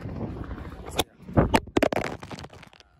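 A phone knocks and clatters as it is fumbled and dropped.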